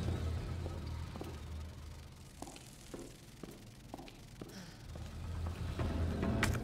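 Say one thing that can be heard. Footsteps tread slowly at an even walking pace.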